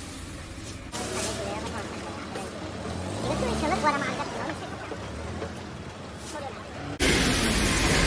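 Hydraulics whine as a truck's dump bed tilts up.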